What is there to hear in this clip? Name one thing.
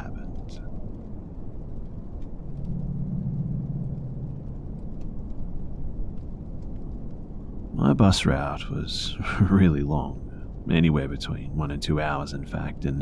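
Wind blows softly outside during a snowfall.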